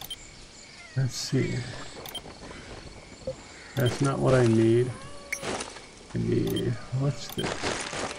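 A man speaks casually into a close microphone.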